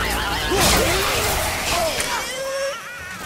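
Wood and debris burst apart with a loud crash.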